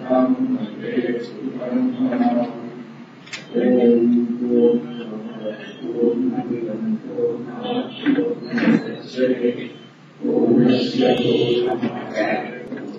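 An elderly man speaks calmly into a clip-on microphone, close by.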